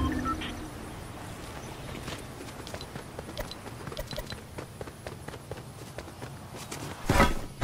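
Footsteps patter on grass and dirt.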